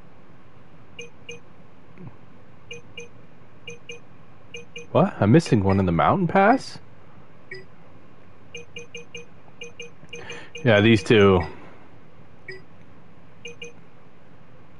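Short electronic blips chime as a menu selection moves.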